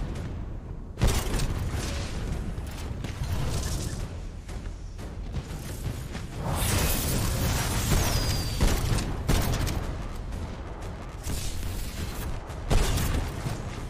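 Heavy guns fire in rapid bursts with loud booming blasts.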